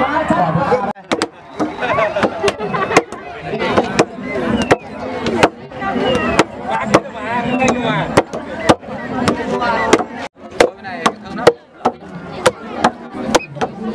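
Wooden mallets pound rice dough with rapid, repeated thuds.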